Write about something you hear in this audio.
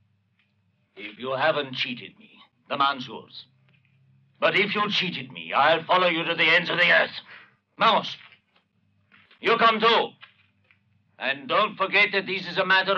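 A second man speaks with animation close by.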